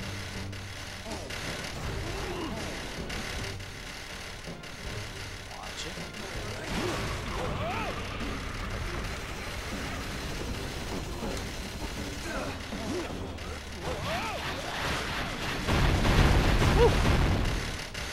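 Quick whooshing and chiming game effects sound.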